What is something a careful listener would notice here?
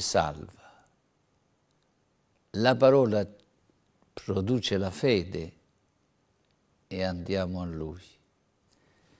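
An elderly man speaks emphatically into a microphone, pausing between phrases.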